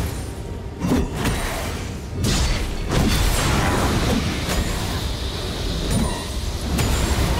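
Magical spells crackle and burst with sharp impacts in a fight.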